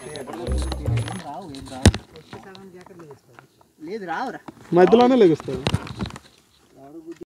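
Young men talk with animation outdoors.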